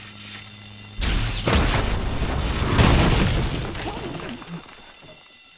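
A heavy blast rumbles as rubble crashes down.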